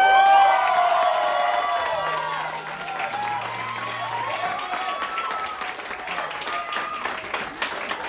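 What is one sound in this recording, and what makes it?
Several voices cheer and call out nearby.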